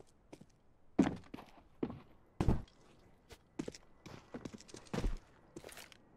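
Sharp gunshots crack several times.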